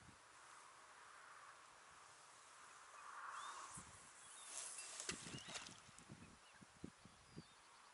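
A fishing reel clicks as a man winds in line.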